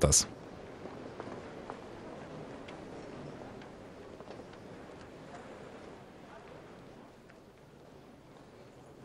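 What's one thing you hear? Footsteps and a low murmur of passers-by fill a street.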